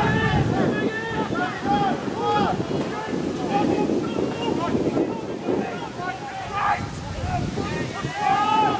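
Men and women on a sideline talk and shout nearby, outdoors.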